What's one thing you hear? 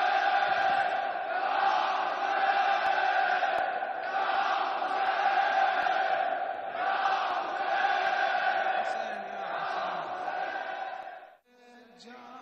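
A large crowd of men chants loudly in unison.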